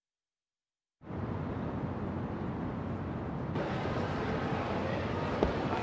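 A busy street hums with steady crowd noise.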